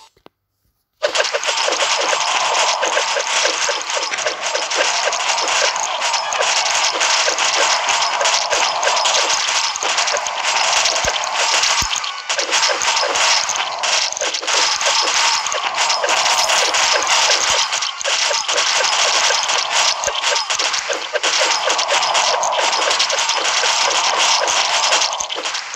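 Video game shots fire rapidly with quick zaps and bursts.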